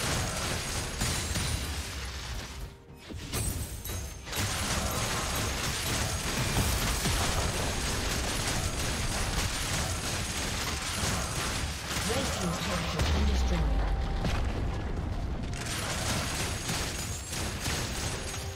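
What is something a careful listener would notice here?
Magic spells whoosh and crackle in a busy fight.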